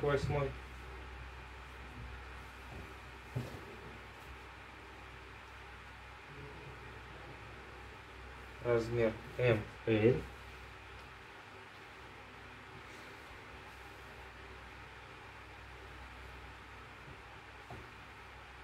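Fabric rustles softly as clothes are laid down and smoothed flat.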